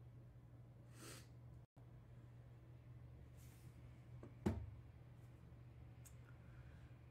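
Hands handle small objects close by, with an occasional sharp knock.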